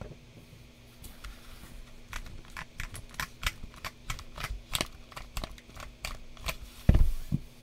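Keys on a mechanical keyboard are pressed one at a time with sharp clicks.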